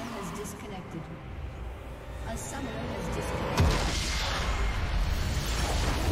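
Magical blasts and impacts crash in a game battle.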